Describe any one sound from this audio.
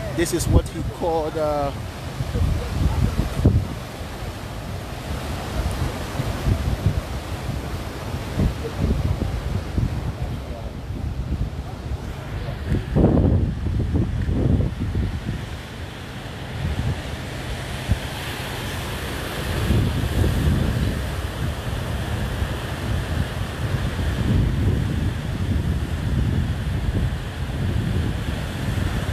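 Wind blows hard against a microphone outdoors.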